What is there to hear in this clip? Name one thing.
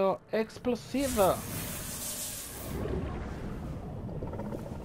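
A cartoon explosion booms and roars.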